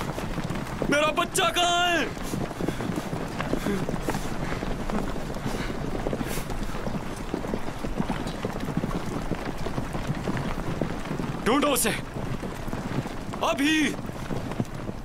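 A man shouts hoarsely nearby.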